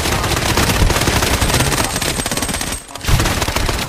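An automatic rifle fires rapid bursts of gunshots.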